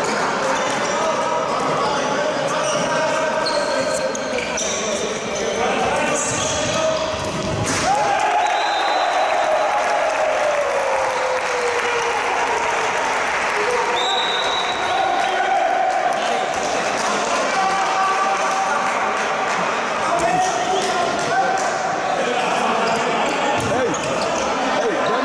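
A crowd of spectators shouts and cheers in a large echoing sports hall.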